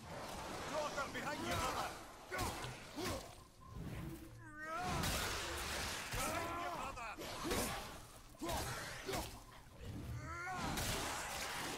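Heavy blows land in a close fight.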